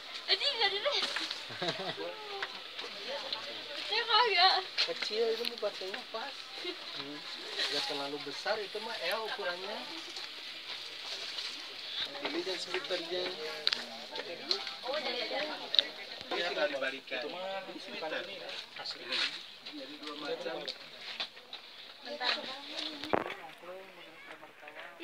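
Women talk nearby.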